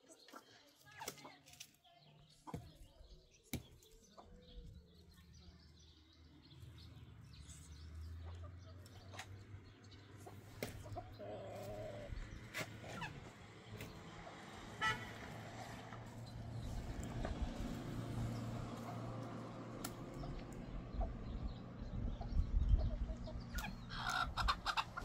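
Chickens cluck and peck outdoors.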